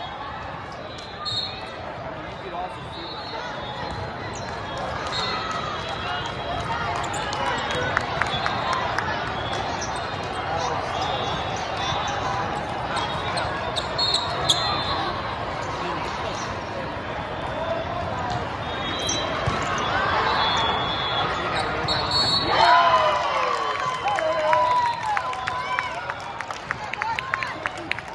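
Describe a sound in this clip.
A crowd of young players and spectators chatters in a large echoing hall.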